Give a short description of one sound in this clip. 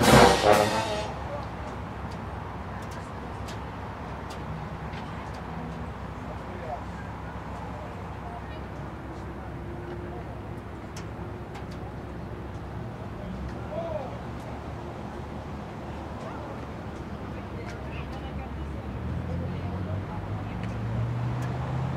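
A crowd of people chatters faintly in the distance, outdoors.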